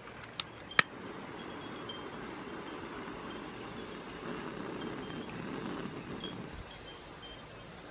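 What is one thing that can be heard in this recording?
A gas torch hisses steadily.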